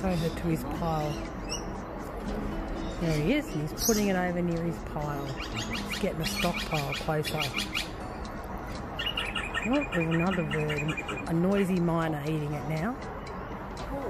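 A magpie warbles and carols nearby.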